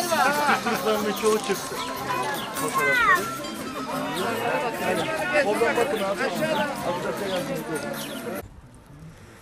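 A crowd of adult men and women chat outdoors, close by.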